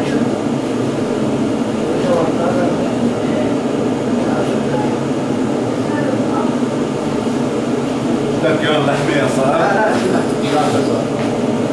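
A fire roars steadily inside an oven.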